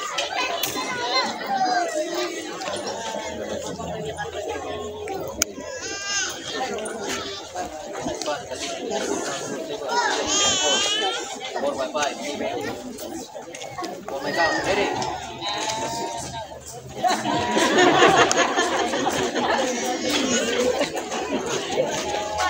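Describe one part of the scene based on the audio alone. A crowd of people chatter and cheer outdoors.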